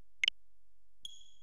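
A short electronic menu click sounds.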